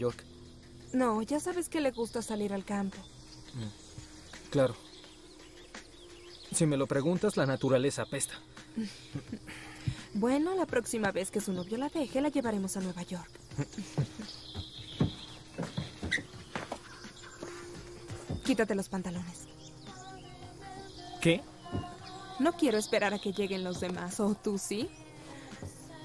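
A young woman speaks softly and calmly close by.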